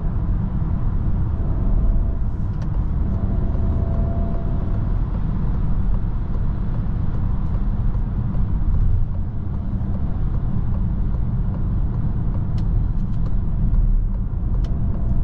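A car's engine hums steadily, heard from inside.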